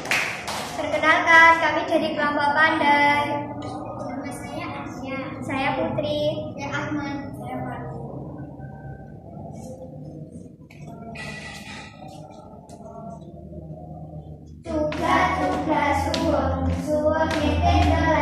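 Young girls speak in turn, close by.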